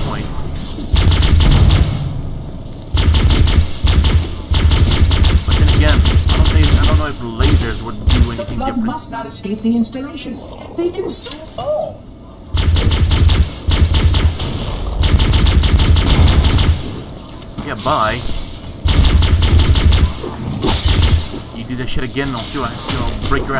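An energy rifle fires in rapid, buzzing bursts.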